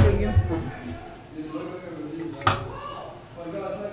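Fingers rub and stir dry flour in a metal bowl.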